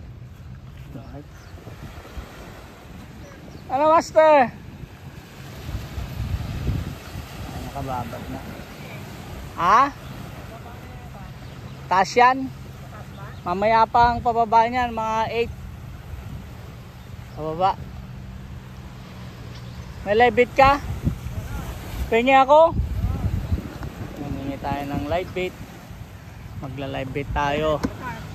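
Small waves lap gently on a beach.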